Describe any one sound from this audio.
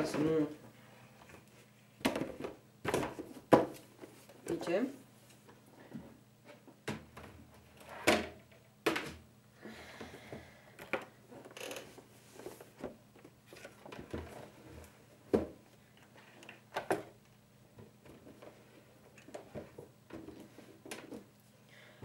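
Objects knock and clatter as they are handled close by.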